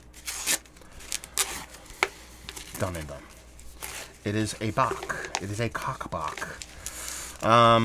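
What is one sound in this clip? Tissue paper crinkles as it is unwrapped.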